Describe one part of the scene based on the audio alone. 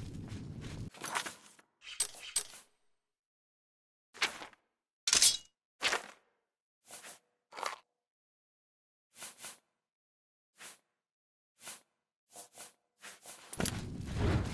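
Soft interface clicks tick one at a time at an uneven pace.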